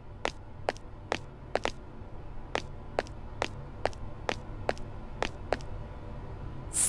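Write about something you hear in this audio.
Footsteps tap steadily on a wooden floor.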